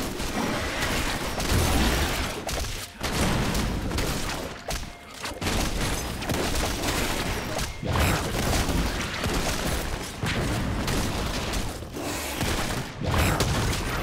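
Spell effects and combat sounds from a video game burst and clash.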